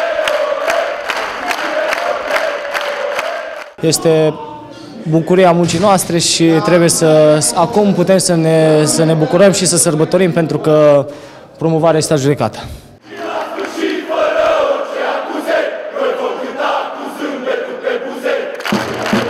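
A crowd chants loudly outdoors.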